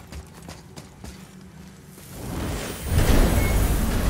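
A heavy metal mechanism turns and rumbles.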